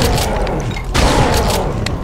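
A shotgun fires with a loud, booming blast.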